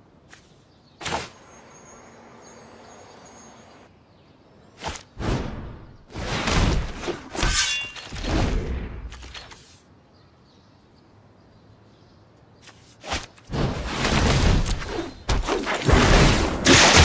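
Game sound effects chime and whoosh as cards are played.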